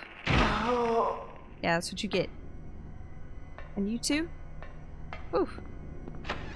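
A young woman talks into a close microphone, in short, lively bursts.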